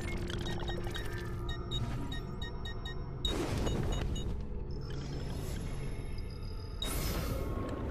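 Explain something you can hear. Menu clicks and chimes sound in quick succession.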